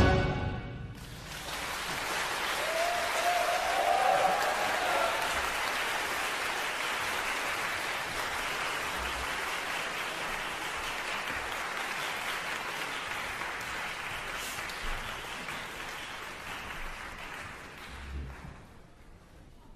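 An audience applauds steadily in a large hall.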